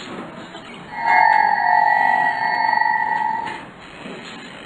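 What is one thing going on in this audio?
A bright electronic tone rings out as a game panel slides open.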